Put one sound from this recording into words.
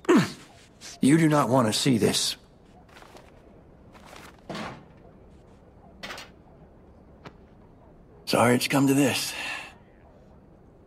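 An older man speaks calmly and quietly.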